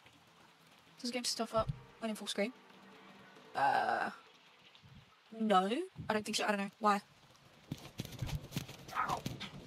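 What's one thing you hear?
A young woman talks animatedly into a microphone, close by.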